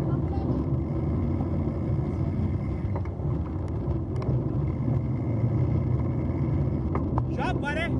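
Bicycle tyres crunch steadily over a gravel path.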